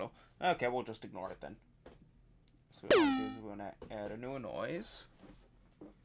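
Short electronic synth notes play in quick bursts, then stop.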